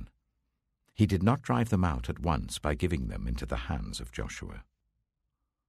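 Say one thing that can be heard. An older man reads aloud calmly and clearly, close to a microphone.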